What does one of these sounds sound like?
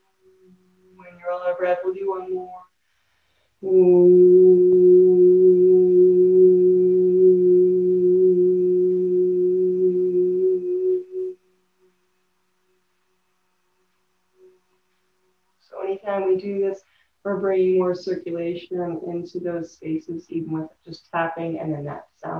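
A middle-aged woman speaks calmly nearby.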